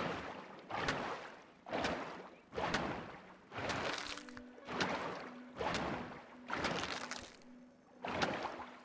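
A tool swishes and strikes moss again and again in a steady rhythm.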